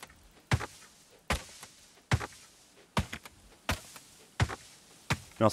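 An axe chops wood with sharp, regular knocks.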